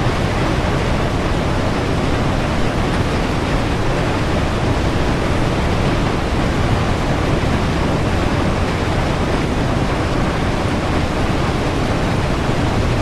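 A steam locomotive rumbles steadily along the rails.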